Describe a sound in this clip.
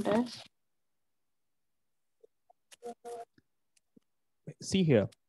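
A man speaks calmly into a microphone over an online call, pausing between phrases.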